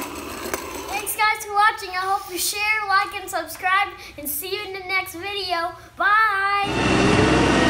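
A young boy talks cheerfully and close by.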